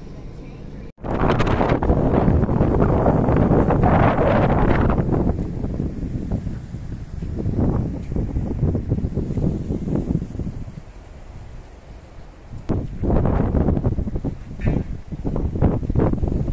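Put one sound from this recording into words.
Wind blows and rumbles across the open air outdoors.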